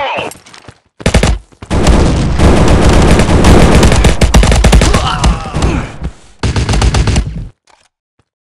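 Rifle fire rattles in rapid, loud bursts.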